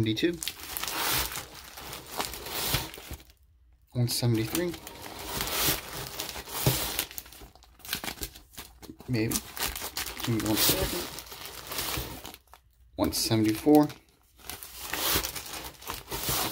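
Plastic sleeves rustle and crinkle as comics are flipped through.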